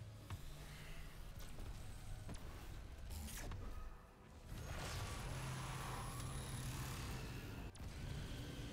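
A beam weapon hums and crackles with electricity.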